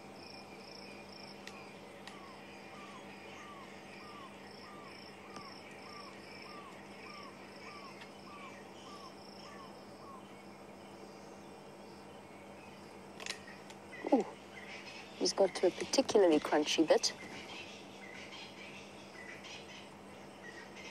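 A big cat rustles softly through tall grass.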